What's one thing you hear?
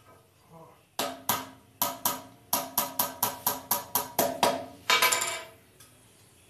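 Wooden sticks knock and tap together in quick bursts.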